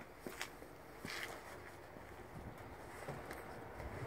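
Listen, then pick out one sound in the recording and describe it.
Bags thump and scrape onto a shelf.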